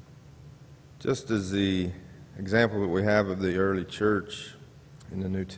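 A man speaks slowly into a microphone, echoing through a large hall.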